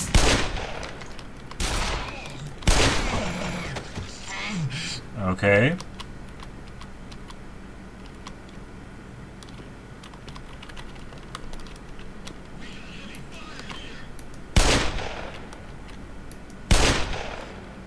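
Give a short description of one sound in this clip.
A revolver fires single loud shots.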